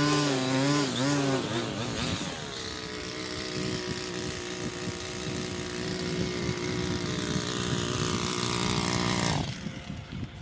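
A petrol lawn mower engine hums steadily nearby, then cuts out.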